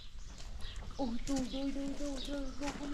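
A young girl speaks in a drawn-out, sing-song voice nearby.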